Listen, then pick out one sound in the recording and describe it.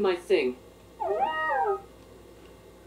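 A small robot answers in a synthetic, sing-song voice.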